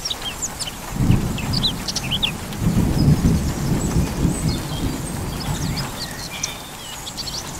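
Thunder rumbles in the distance.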